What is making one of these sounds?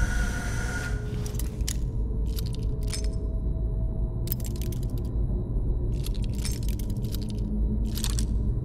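A lockpick scrapes and clicks inside a metal lock.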